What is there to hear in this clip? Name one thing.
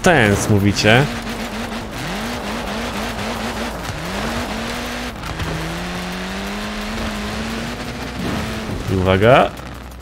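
A car engine revs and whines.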